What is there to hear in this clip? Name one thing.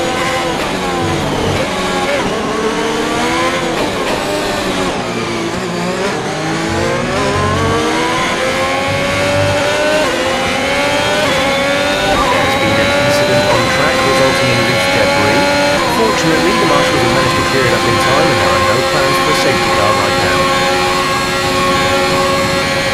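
A racing car engine whines loudly, dropping in pitch as it slows, then rising steadily as it speeds up through gear changes.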